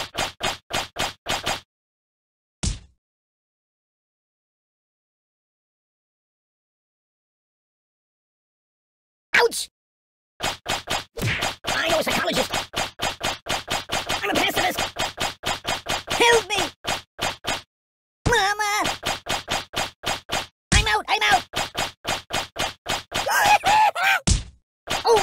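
Darts thud rapidly into a soft doll.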